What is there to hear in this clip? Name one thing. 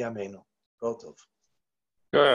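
An elderly man speaks over an online call.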